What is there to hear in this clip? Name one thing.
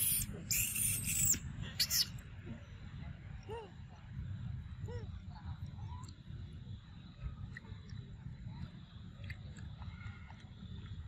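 A monkey chews soft fruit with wet smacking sounds.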